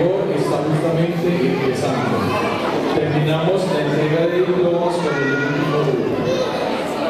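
A man speaks steadily into a microphone, heard through a loudspeaker in a hall.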